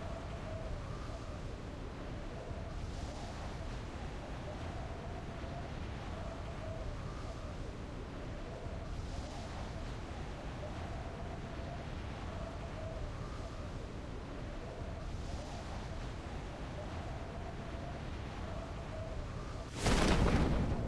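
Wind rushes steadily past a falling skydiver.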